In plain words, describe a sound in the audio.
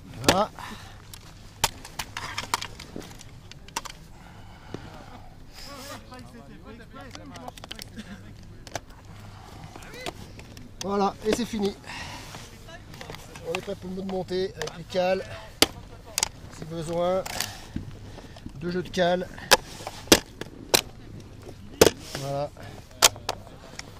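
Snowboard binding buckles click and ratchet.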